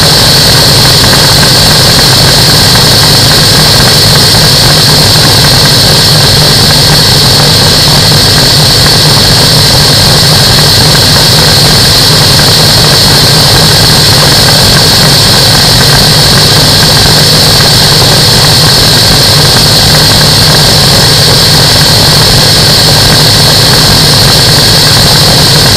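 A small aircraft engine drones loudly and steadily up close.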